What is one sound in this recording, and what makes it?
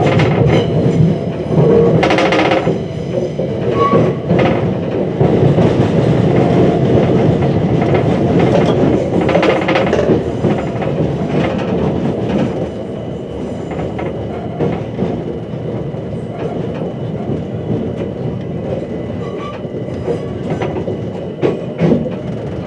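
Train wheels clatter and squeal over rail joints and points.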